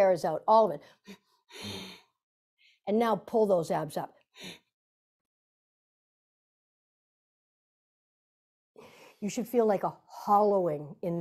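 An older woman speaks calmly and clearly into a close microphone, pausing between phrases.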